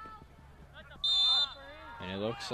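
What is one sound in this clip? A referee blows a short, sharp whistle.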